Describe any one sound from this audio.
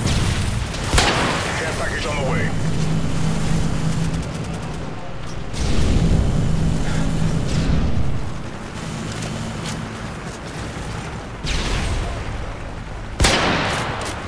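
A rifle fires single sharp, loud shots.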